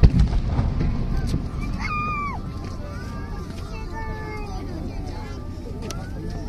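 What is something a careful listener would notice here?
A firework rocket fizzes and whistles as it shoots up into the sky.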